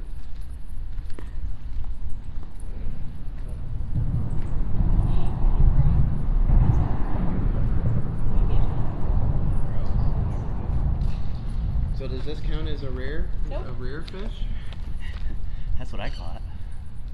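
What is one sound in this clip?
Wind buffets and rumbles outdoors.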